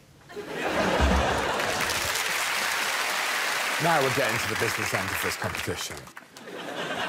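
A small group applauds and laughs.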